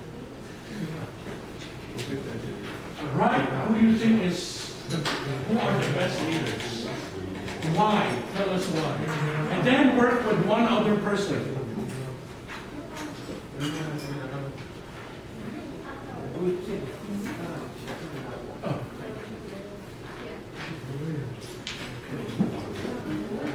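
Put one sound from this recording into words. Several young people talk and laugh in a large echoing hall.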